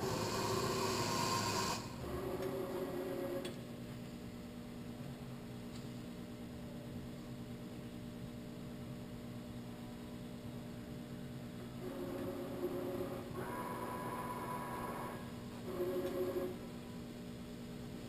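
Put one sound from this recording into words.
A milling machine motor hums steadily, its pitch shifting now and then.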